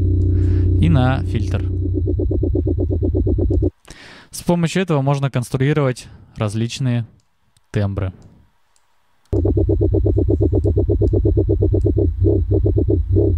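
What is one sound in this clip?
A deep electronic bass loop pulses rapidly and steadily.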